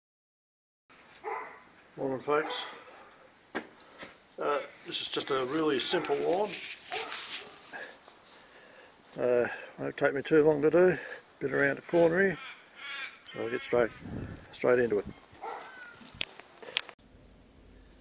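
An elderly man talks calmly, close to the microphone.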